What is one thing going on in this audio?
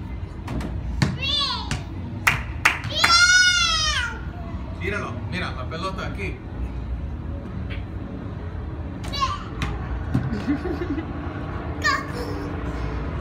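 A small child squeals and babbles excitedly nearby.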